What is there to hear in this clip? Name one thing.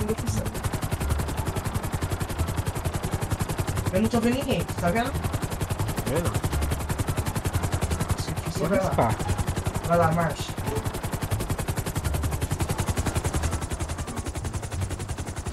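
A helicopter's rotor chops rapidly and steadily nearby.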